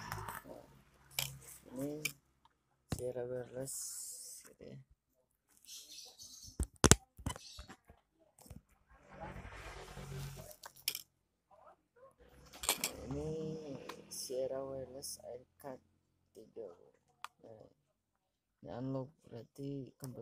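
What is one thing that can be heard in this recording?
A plastic-wrapped box crinkles as hands turn it over.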